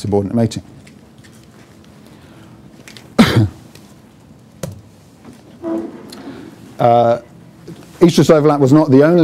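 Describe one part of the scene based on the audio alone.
A man lectures with pauses, heard at a distance in a room.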